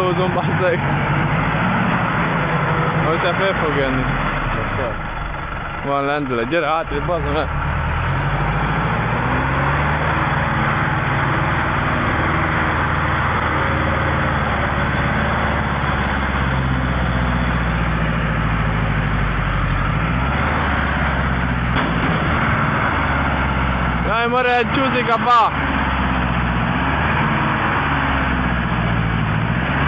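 A truck engine labours and roars steadily as the truck grinds through mud.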